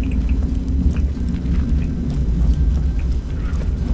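An electric field crackles and buzzes steadily.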